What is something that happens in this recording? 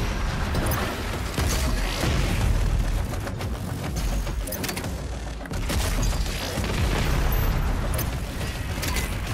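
Heavy footsteps thud across a metal floor.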